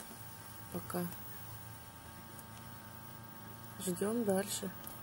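An incubator's fan hums steadily.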